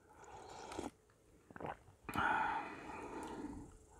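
A spoon clinks against a bowl of soup.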